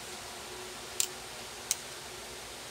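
Pliers snip sharply, clicking.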